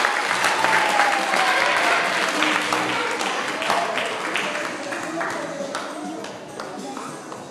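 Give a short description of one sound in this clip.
Children clap their hands and chatter in an echoing hall.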